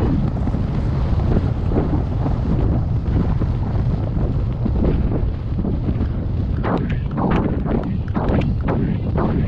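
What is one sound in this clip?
Hooves thud on soft grass at a steady gallop.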